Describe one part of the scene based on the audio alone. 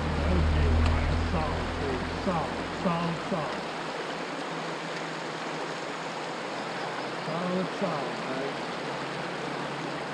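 Shallow river water rushes over riffles.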